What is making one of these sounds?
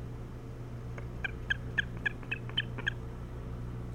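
An osprey calls in a quick series of sharp, high chirps.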